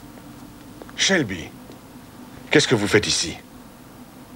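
A man speaks sharply nearby.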